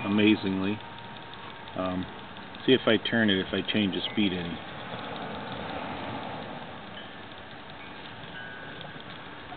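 A small electric motor whirs steadily.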